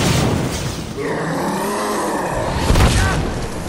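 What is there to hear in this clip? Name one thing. A deep monstrous roar rises and falls.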